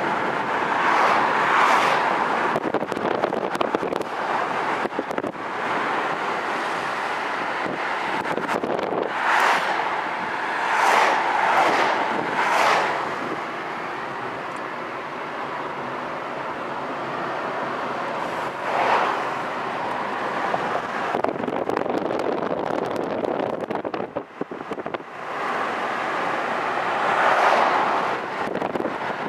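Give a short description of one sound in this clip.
Road noise rumbles steadily from inside a moving car.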